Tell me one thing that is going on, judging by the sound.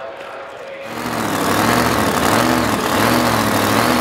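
A drag racing car's V8 engine revs in bursts.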